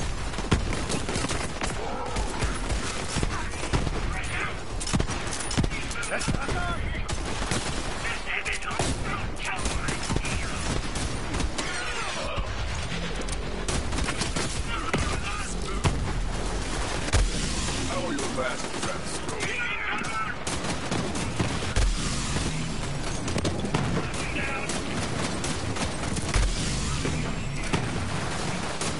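Gunfire from a video game crackles in rapid bursts.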